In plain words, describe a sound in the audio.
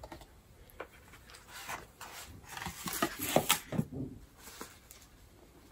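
A fabric bag rustles as it is pulled from a box.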